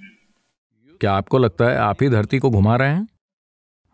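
An elderly man speaks calmly and clearly into a close microphone.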